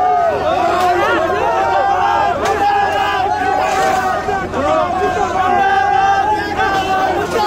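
Metal barricades rattle and clang as they are pushed.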